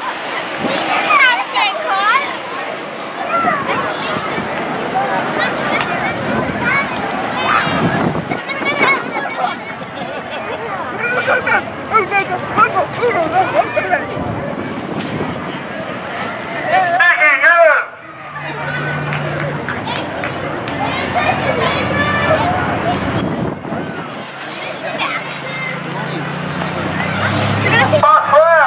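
A crowd chatters and calls out along a street outdoors.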